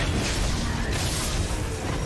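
A sword slashes through the air with a sharp swish.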